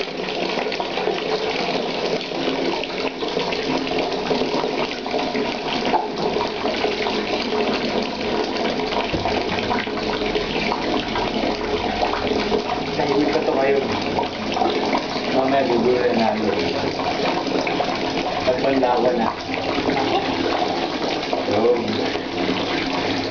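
Water runs steadily from a tap and splashes onto a dog.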